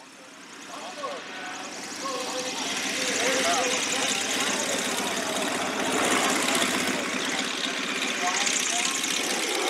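A propeller plane's engine drones on a runway nearby, growing louder.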